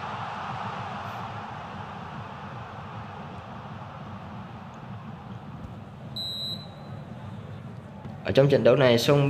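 A stadium crowd cheers and slowly fades.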